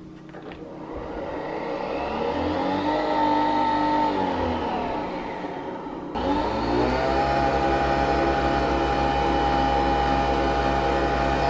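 A coffee machine whirs and hums steadily, growing louder.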